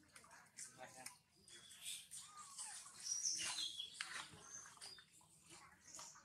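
Dry leaves rustle as a monkey moves on the ground.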